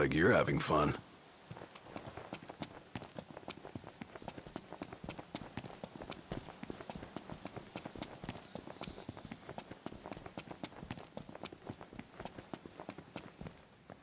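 Quick footsteps patter steadily on dry ground as a young man runs.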